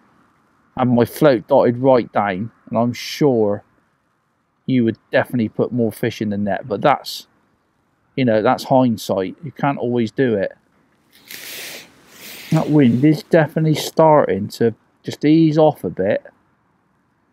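A man talks calmly and close to a microphone.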